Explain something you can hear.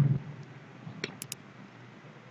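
A mouse button clicks once.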